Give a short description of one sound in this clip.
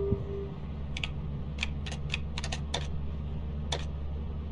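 Keyboard keys clack quickly as someone types.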